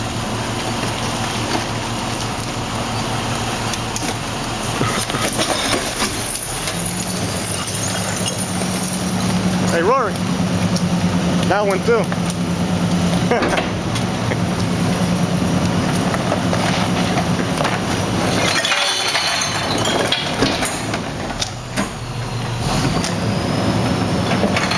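A garbage truck's engine rumbles steadily close by.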